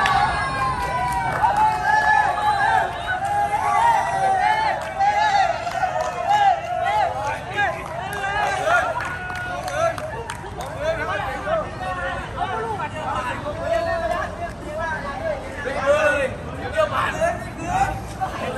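A group of young men shout and call out to one another outdoors.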